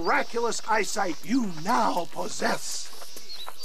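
A man speaks theatrically with animation.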